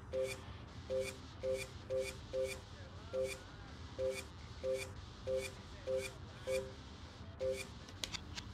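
Short electronic menu beeps sound again and again at a steady pace.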